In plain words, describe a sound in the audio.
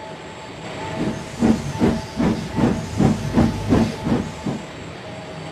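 A toy train rattles along a track, clicking over the joints.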